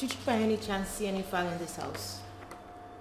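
A young woman speaks sharply nearby.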